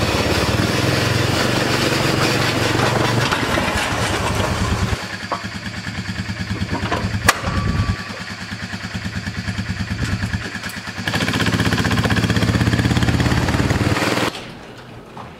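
An ATV engine revs with a loud rumble.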